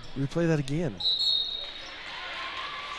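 A referee's whistle blows sharply.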